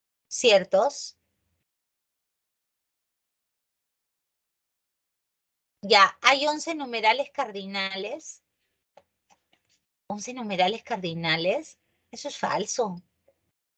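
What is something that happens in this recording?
A woman speaks calmly through a microphone, in short phrases with pauses.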